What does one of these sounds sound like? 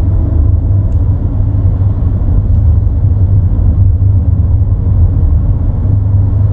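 A car's engine hums low and steady while driving.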